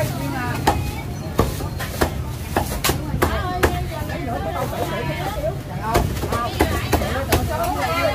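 A cleaver chops through roast duck on a wooden chopping block.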